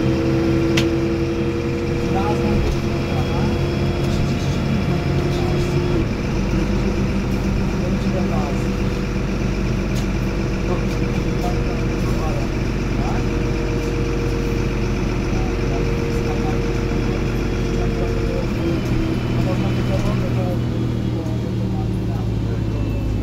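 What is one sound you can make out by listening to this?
A bus engine hums and whines steadily while driving.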